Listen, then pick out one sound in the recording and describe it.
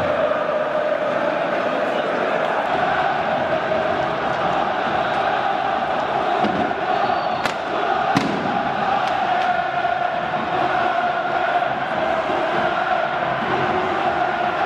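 A huge stadium crowd chants loudly in unison.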